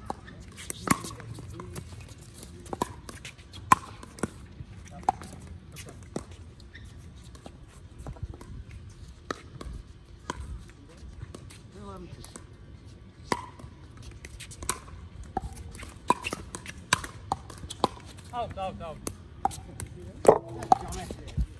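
Paddles strike a hard plastic ball with sharp pops outdoors.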